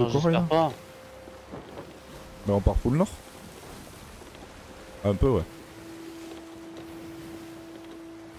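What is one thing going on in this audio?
Rough sea waves surge and splash around a wooden ship.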